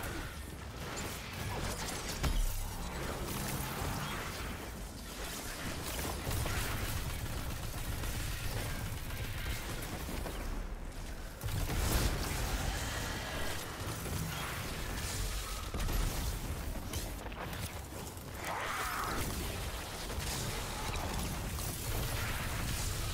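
Guns fire in rapid bursts with loud blasts and explosions.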